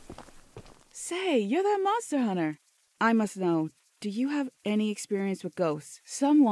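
A woman speaks calmly and close by.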